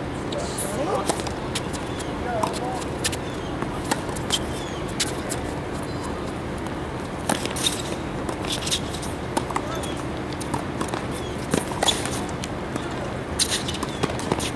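Tennis balls are struck sharply by rackets in a rally.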